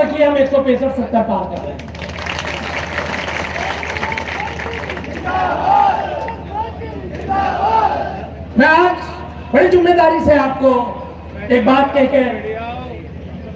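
A man gives a speech loudly through a microphone and loudspeakers, echoing outdoors.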